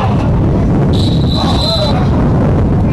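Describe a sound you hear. A referee's whistle blows outdoors.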